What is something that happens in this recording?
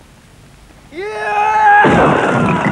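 Concrete blocks crack and crash apart.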